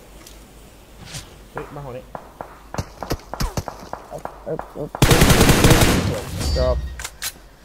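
Gunshots crack in quick bursts, loud and close.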